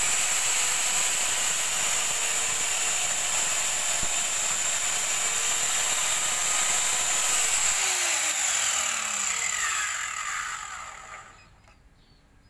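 A power saw whines loudly, then winds down.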